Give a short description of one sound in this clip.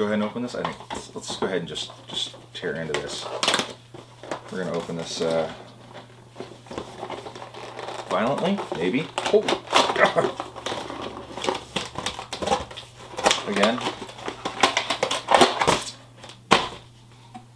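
Packaging rustles and crinkles as a man handles it.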